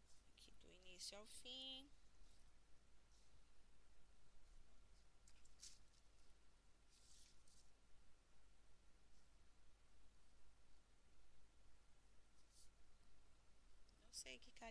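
Fingers handle small objects with soft rustles and clicks.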